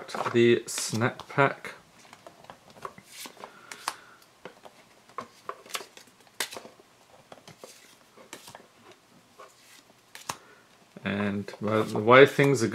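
Stiff cards flick and rustle as fingers flip through a stack.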